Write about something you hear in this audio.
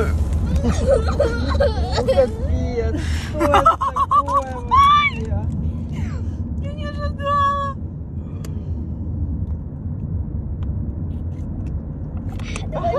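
A car engine hums steadily with road noise.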